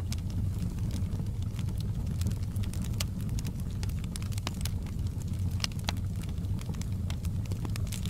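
Burning logs crackle and pop in a fire.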